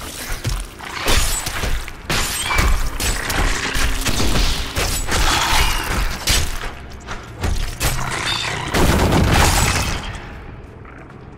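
Heavy blows and crashes of a fight ring out in quick succession.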